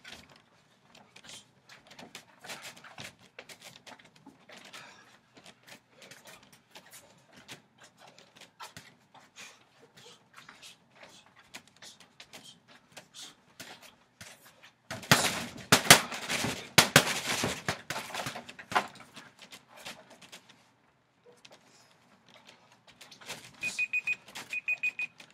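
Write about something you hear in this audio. Feet shuffle and stamp on wooden boards.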